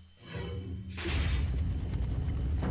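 A heavy stone door grinds open with a deep rumble.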